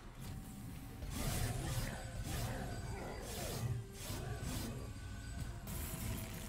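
Game effects clash and whoosh.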